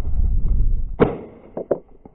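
A shotgun fires a single loud shot outdoors.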